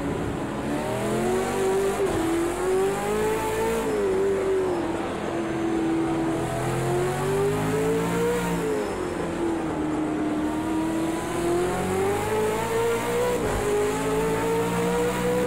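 A race car engine roars steadily, rising and falling in pitch as the car speeds up and slows for corners.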